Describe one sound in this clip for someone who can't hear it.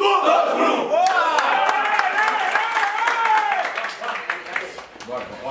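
A group of young men shout and cheer together.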